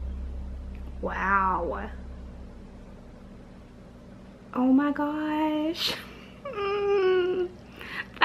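A young woman sings emotionally, close by.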